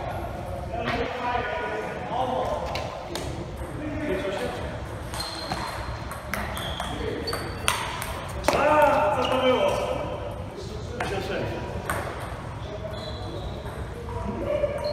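A ping pong ball clicks back and forth off paddles and a table.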